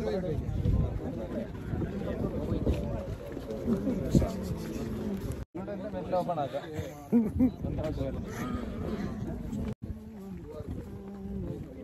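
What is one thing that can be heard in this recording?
Several men chatter in a crowd outdoors.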